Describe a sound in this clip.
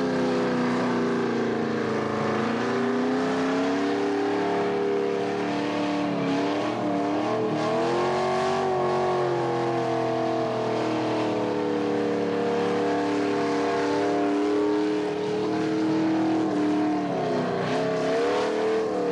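A car engine revs hard and wavers up and down.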